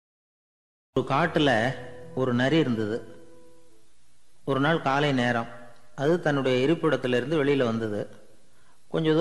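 An elderly man speaks calmly and closely into a microphone.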